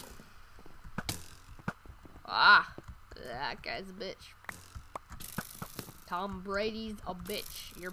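Short thuds of sword blows land on a player in a video game.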